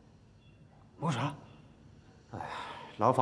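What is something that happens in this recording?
A young man answers nearby.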